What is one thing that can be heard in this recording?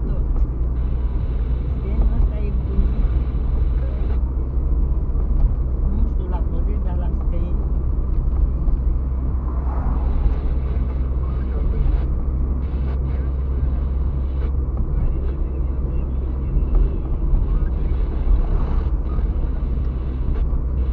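Tyres roll over the road surface with a steady rumble.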